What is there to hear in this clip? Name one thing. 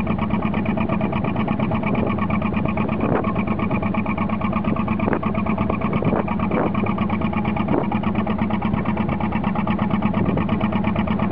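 A boat engine chugs steadily close by.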